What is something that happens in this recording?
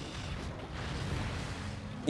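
A fiery explosion booms.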